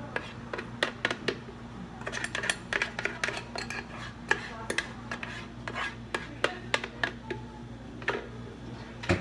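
A straw clicks and rattles against ice in a plastic cup.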